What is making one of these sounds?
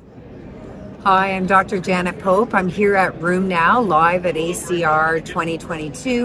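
A middle-aged woman speaks calmly and clearly into a nearby microphone.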